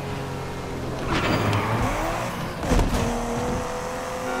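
Tyres screech as a car skids around a corner.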